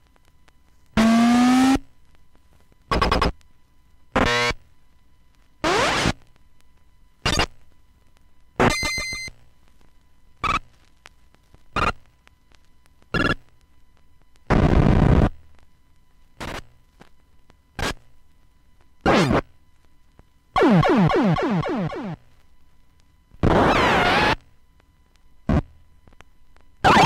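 A vinyl record plays short electronic video game sound effects, one after another with silent gaps.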